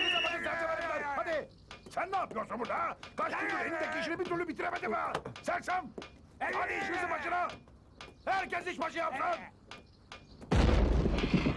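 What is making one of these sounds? An elderly man shouts with animation nearby.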